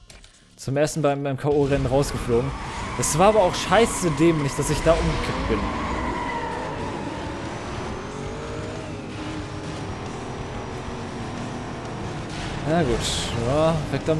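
A racing car engine revs and roars as it accelerates.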